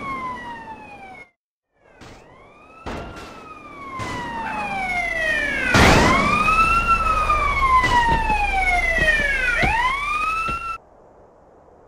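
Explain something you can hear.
Police sirens wail, rising and falling as patrol cars arrive.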